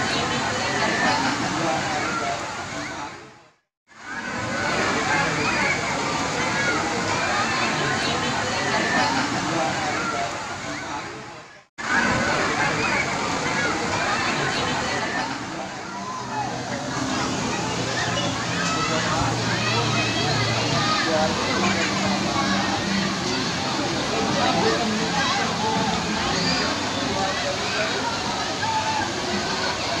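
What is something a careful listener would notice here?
A large crowd of children and adults shouts and chatters outdoors.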